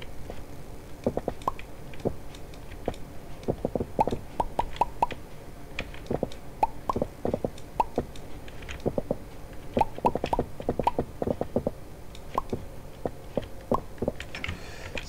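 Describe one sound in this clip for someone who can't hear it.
A pickaxe knocks on stone with quick, repeated taps.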